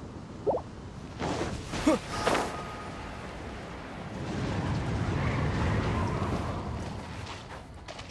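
A magical blast whooshes and roars.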